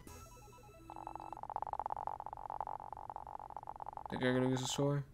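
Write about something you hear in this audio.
A game's score counter ticks rapidly.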